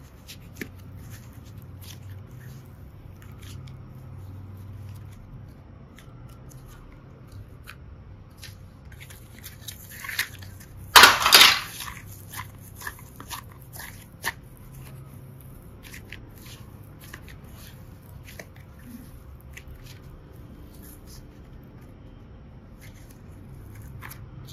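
Soft clay squishes and crackles between fingers, close up.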